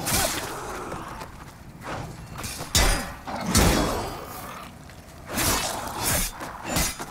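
Flames burst with a roaring whoosh.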